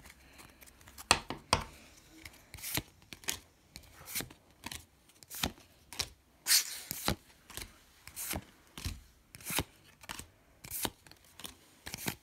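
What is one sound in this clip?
Trading cards swish and slap as they are flipped one after another, close by.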